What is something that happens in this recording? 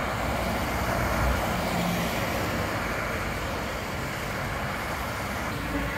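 Road traffic rushes past close by.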